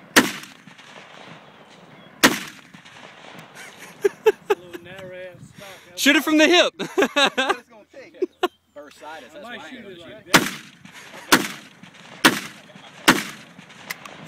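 A rifle fires single loud shots that echo outdoors.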